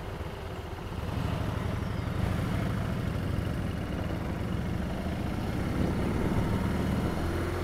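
A motorcycle engine revs up and pulls away, growing louder.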